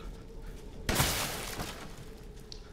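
A shotgun fires with a loud boom.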